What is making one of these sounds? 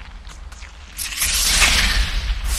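A bright magical whoosh swells and shimmers loudly.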